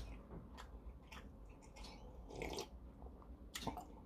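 A man gulps a drink.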